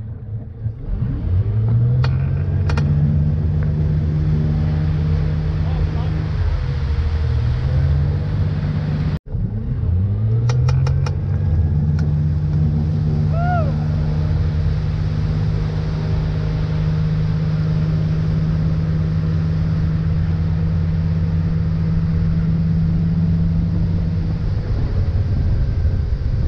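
A motorboat engine revs up and drones steadily at speed.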